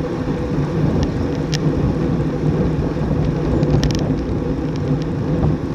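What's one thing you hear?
A bicycle chain clicks and ticks now and then.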